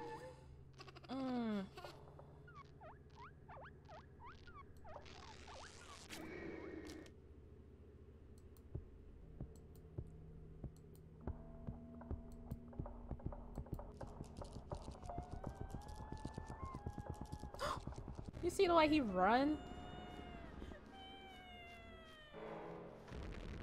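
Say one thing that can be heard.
Cartoonish game sound effects chirp, squeak and whoosh.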